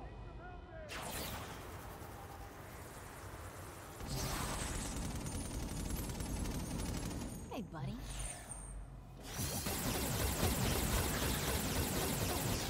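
Electric energy crackles and hisses in bursts.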